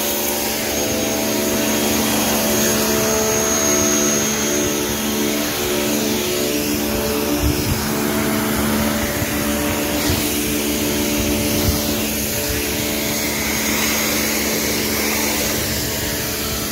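A pressure washer motor drones steadily.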